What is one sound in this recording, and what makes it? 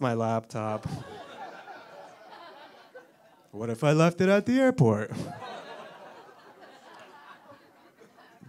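An audience laughs softly.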